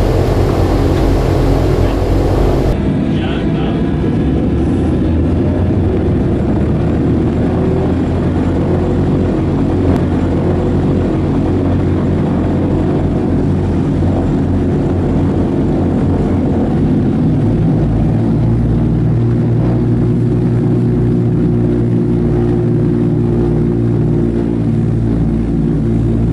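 Propeller engines roar loudly and steadily.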